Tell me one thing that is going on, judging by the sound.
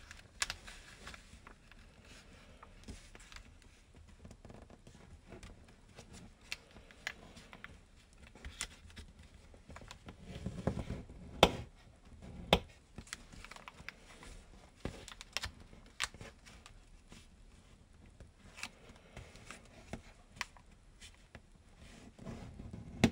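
Fingers tap and press creases into paper.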